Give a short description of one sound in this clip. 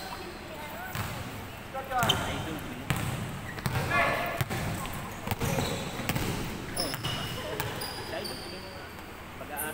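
A basketball bounces with hollow thuds.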